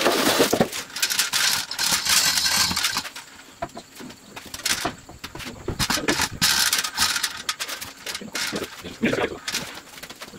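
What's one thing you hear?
Metal parts clank and rattle as an engine is worked on by hand.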